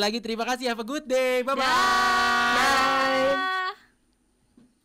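A young man calls out a cheerful goodbye over an online call.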